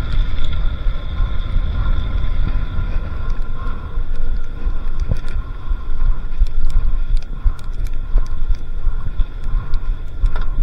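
Bicycle tyres crunch and rumble over a rough dirt track.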